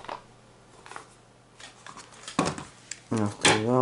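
A plastic packet knocks lightly as it is set down on a table.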